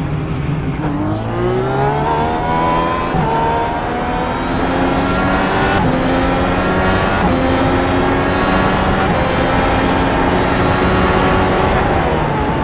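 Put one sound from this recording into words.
A race car engine roars louder and louder as it speeds up, rising in pitch and dropping at each gear change.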